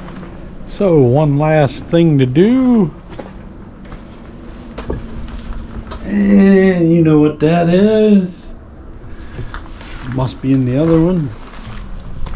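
A middle-aged man speaks calmly and close by.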